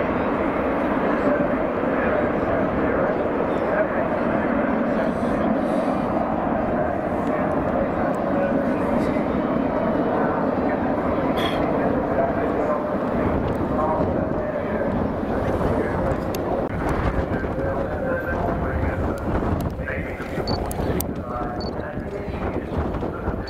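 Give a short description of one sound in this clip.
Jet engines roar loudly overhead.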